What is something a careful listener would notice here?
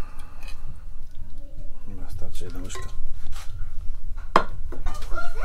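A metal spoon scrapes and clinks against a plate.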